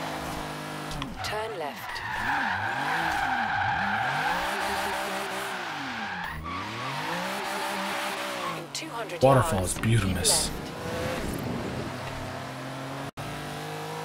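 A car engine revs up and down throughout.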